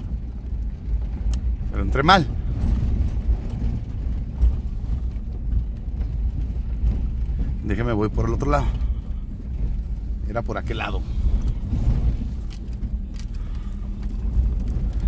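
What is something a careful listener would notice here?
Tyres crunch and bump over a rough dirt road.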